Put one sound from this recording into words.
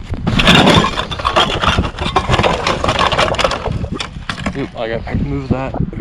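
Glass bottles clink together.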